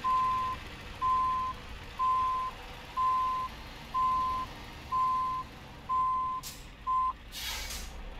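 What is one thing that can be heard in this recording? A truck's reversing alarm beeps at an even pace, then stops.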